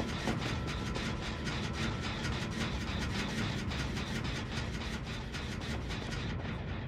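Quick footsteps run across a wooden floor.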